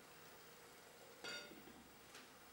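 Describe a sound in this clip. A metal pot lid clinks.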